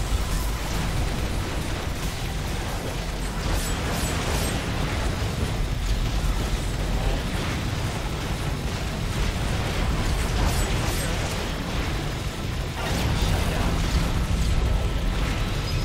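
Rapid game gunfire and laser shots ring out.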